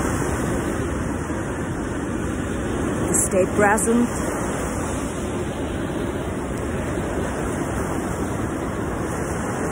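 Waves crash and wash up onto a beach.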